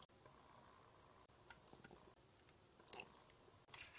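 Liquid drips softly from a squeeze tube.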